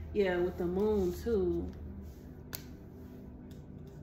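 A playing card is laid down on a table with a soft tap.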